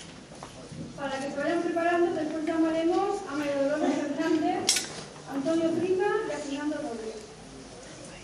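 A woman sings through a microphone in an echoing hall.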